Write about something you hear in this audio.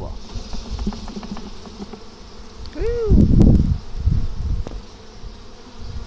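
A wooden frame knocks and scrapes against a hive box.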